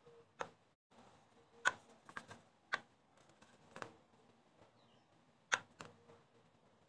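A metal cutter clicks and knocks softly as it is pressed down onto dough.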